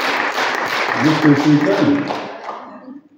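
A man speaks briefly into a microphone in a large hall.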